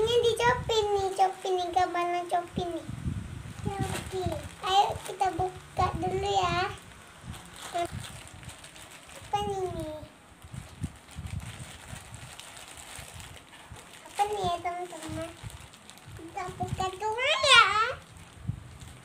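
A young girl talks close by in a high, lively voice.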